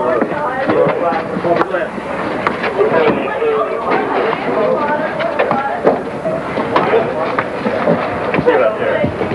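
A crowd of men and women shouts and talks excitedly nearby.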